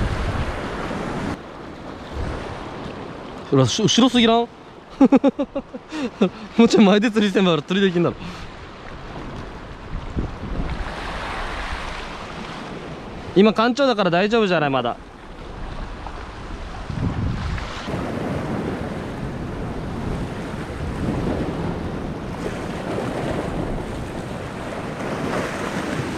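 Waves wash and splash against rocks.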